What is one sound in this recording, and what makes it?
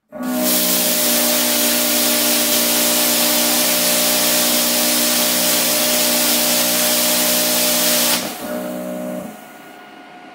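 A welding machine hums steadily.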